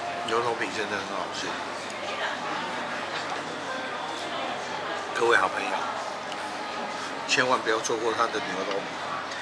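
A middle-aged man talks casually close to the microphone.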